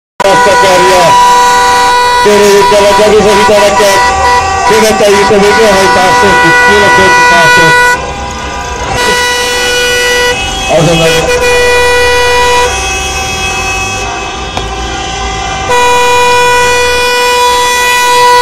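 Car horns honk in long, steady blasts.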